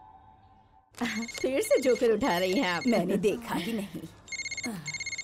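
Several women laugh and chatter together nearby.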